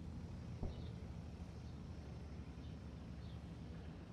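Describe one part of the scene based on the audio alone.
Shells explode in dull distant booms.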